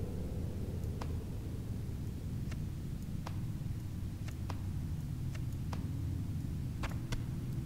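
Soft clicks tick now and then as items are handled.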